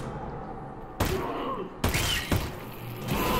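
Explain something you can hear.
Shotgun blasts ring out sharply.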